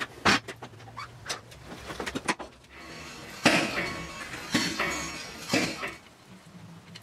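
Metal tools clank and knock against a motorcycle.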